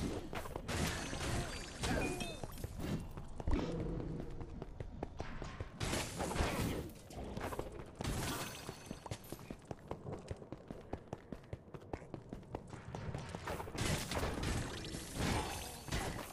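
Weapons clash and thud in a fast fight.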